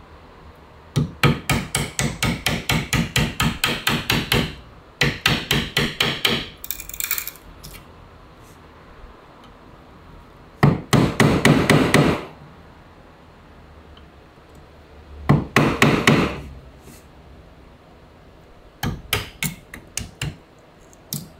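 A chisel scrapes and shaves wood in quick strokes.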